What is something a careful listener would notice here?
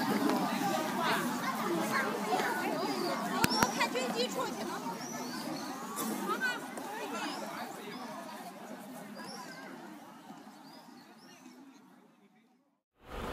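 A crowd murmurs and chatters outdoors in the distance.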